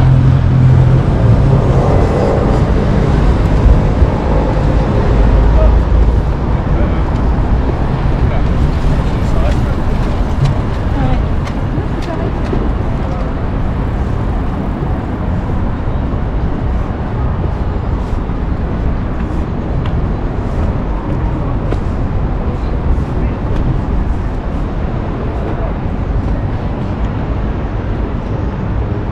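Wind blows steadily across an open outdoor space.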